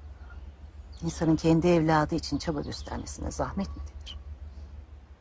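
A young woman answers softly close by.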